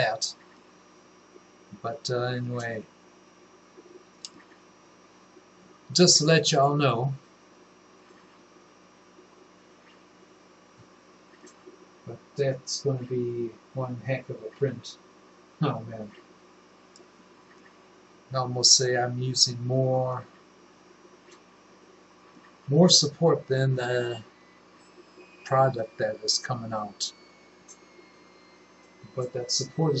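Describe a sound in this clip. An older man talks calmly into a nearby microphone, in short bursts with pauses.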